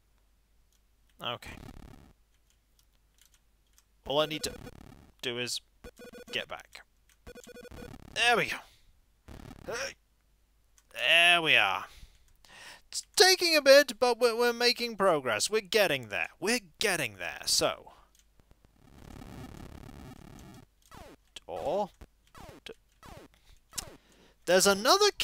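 Retro video game sound effects bleep and buzz.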